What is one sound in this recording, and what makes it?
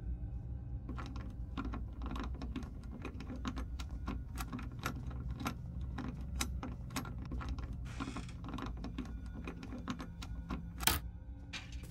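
A lock pick clicks and scrapes inside a metal lock.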